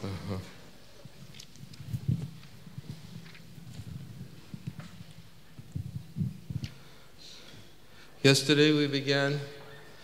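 A middle-aged man speaks calmly into a microphone, heard through loudspeakers.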